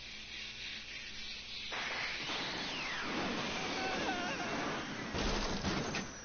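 A flying car whooshes past overhead.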